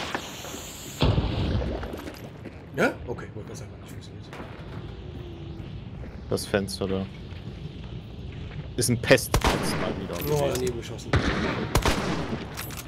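Gunshots crack loudly with echoing reverberation.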